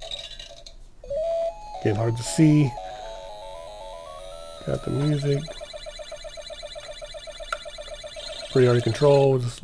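A handheld electronic game plays a bright beeping tune.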